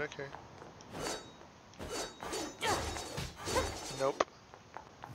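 Metal blades clash in quick strikes.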